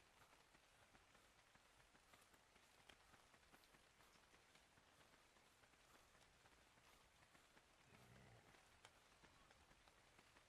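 Wind blows hard and steadily in a sandstorm.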